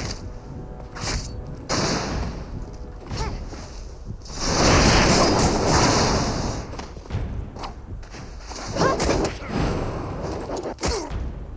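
Blades swish and clang in quick strikes.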